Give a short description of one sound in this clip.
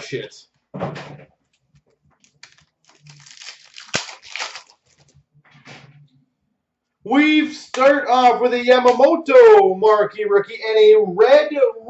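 Cardboard packs and cards rustle and tap as hands handle them.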